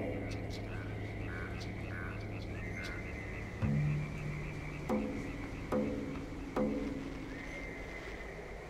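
Low, droning game music plays steadily.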